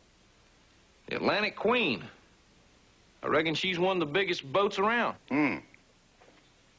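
A younger man reads out and speaks nearby.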